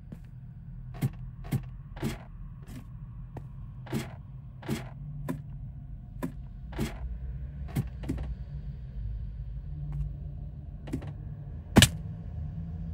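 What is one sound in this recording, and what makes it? Footsteps crunch on rough stone.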